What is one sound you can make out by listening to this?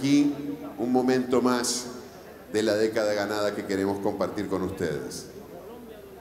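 A man speaks calmly over loudspeakers in a large hall.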